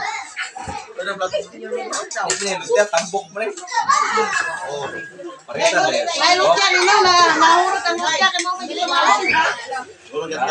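Serving spoons clink against metal pots.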